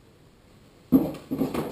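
Objects clatter on a small table close by.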